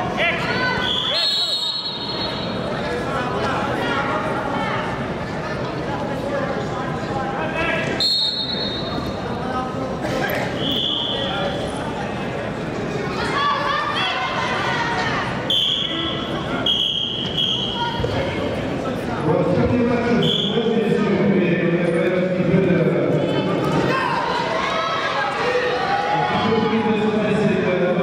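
Wrestling shoes squeak on a mat.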